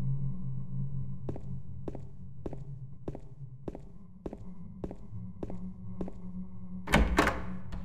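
Footsteps fall at an even pace on a hard floor.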